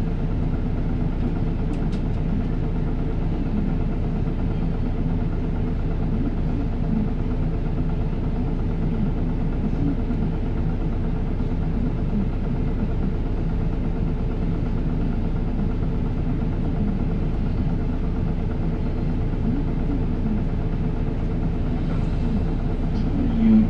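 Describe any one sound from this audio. A bus engine idles with a steady low rumble close by.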